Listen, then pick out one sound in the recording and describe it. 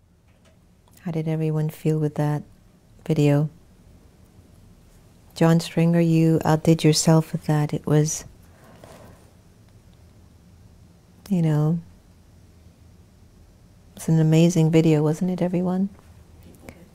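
A middle-aged woman speaks calmly into a close microphone.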